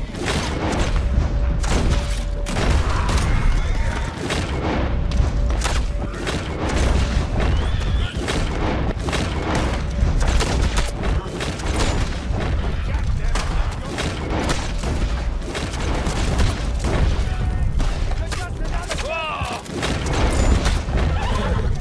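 A horse gallops over dry ground.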